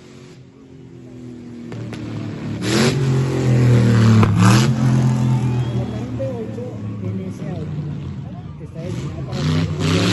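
A large crowd cheers outdoors.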